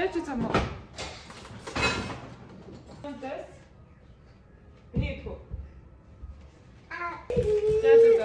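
A woman talks to young children nearby.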